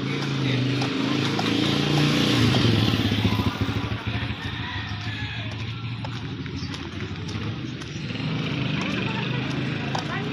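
A motorcycle engine rumbles nearby.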